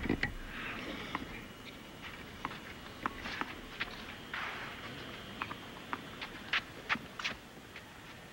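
A tennis ball bounces repeatedly on clay.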